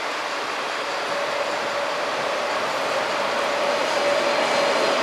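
Train brakes squeal steadily as the train slows.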